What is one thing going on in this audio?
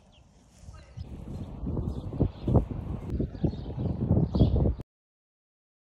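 Footsteps crunch softly on dry grass.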